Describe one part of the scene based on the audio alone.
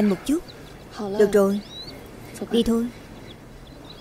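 A young woman speaks briefly and calmly nearby.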